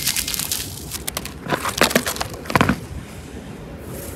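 Plastic packets crinkle and rattle against each other.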